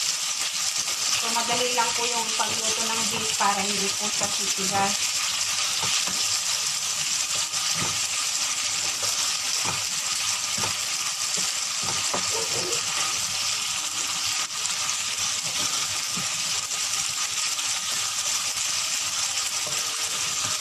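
Meat sizzles steadily in a hot frying pan.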